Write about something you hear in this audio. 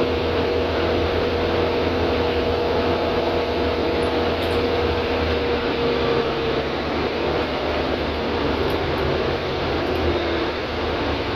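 A bus rattles and hums as it drives along a road.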